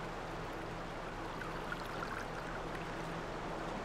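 Footsteps tread softly on a stone path.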